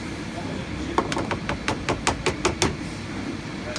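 A spatula taps sharply against the rim of a pan several times.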